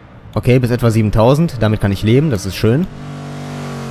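A powerful car engine roars, revving up and down sharply through quick gear changes.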